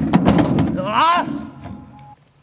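A young man yelps as he falls.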